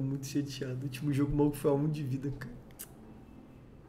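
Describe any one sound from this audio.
A young man speaks with animation over a microphone.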